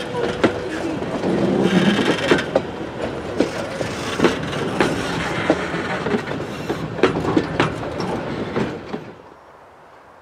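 A train rumbles past close by, wheels clattering over the rail joints.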